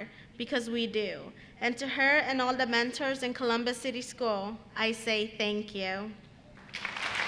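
A young woman speaks into a microphone over loudspeakers, with emotion.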